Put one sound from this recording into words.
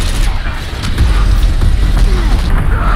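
A large explosion booms and roars.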